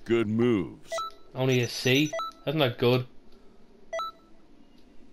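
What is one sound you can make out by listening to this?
Short electronic menu chimes beep.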